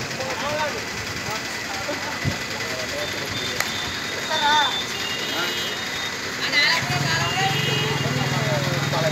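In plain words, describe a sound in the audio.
A crowd of men talks and murmurs outdoors.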